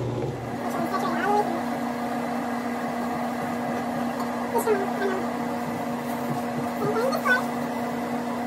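A young woman speaks briefly and casually nearby.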